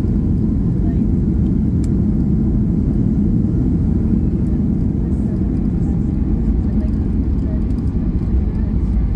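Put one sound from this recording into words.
Wheels rumble on a runway.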